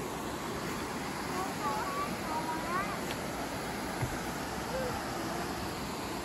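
Young children talk and call out nearby.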